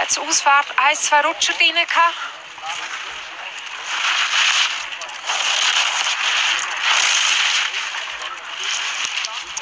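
Skis scrape and hiss loudly over hard snow.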